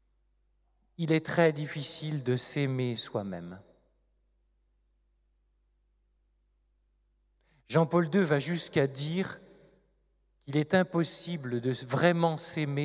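A middle-aged man speaks expressively into a microphone, pausing between phrases.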